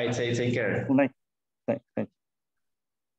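A middle-aged man speaks briefly over an online call.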